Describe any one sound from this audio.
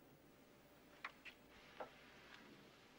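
A wooden door clicks and opens.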